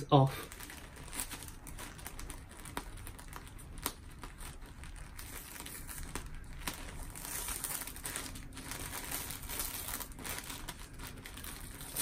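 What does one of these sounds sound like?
Paper crinkles and rustles under hands.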